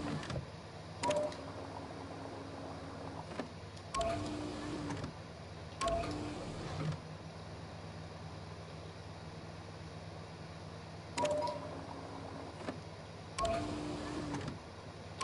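Liquid gurgles and bubbles as it is pumped between tubes, in short bursts.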